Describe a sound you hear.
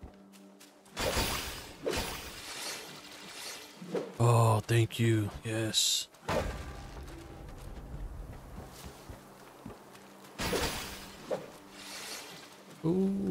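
Wooden crates and barrels smash apart.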